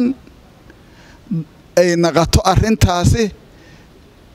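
A man speaks with animation into a microphone, close by.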